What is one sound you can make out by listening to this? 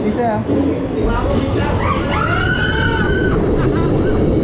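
A roller coaster train rumbles and clatters along its track.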